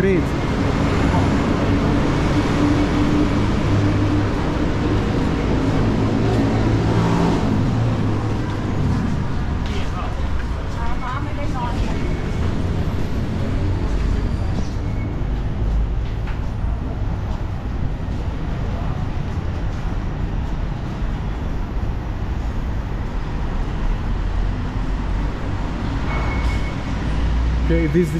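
Low rumbling noise fills a large echoing space.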